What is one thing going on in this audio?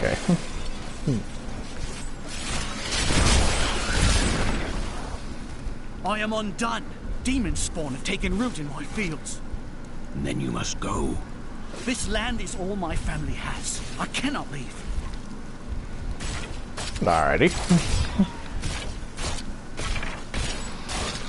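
Swords clash and strike in quick, repeated hits.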